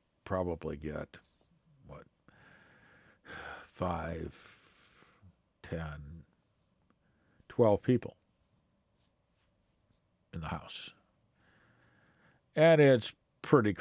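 An elderly man speaks calmly and thoughtfully into a nearby microphone, with pauses.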